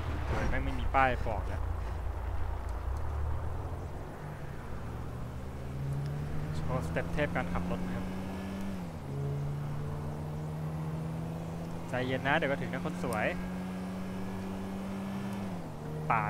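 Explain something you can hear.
A car engine hums steadily, dropping in pitch at each gear change.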